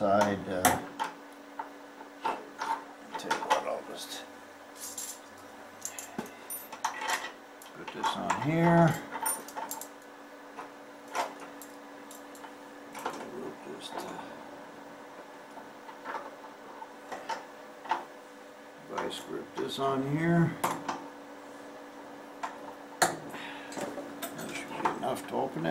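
A wrench clicks and scrapes against a metal bolt.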